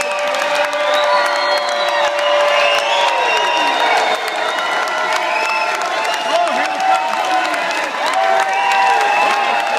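A crowd cheers and whistles loudly in a large hall.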